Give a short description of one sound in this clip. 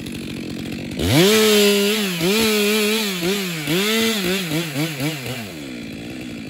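A chainsaw cuts through branches.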